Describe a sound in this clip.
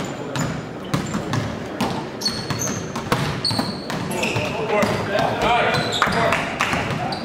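A basketball bounces on a hard gym floor.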